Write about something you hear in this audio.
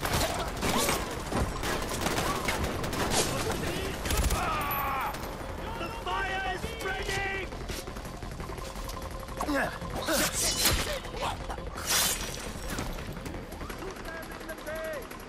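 Guns fire in sharp, repeated shots.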